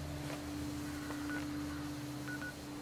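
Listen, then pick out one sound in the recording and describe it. Short electronic beeps sound from a menu.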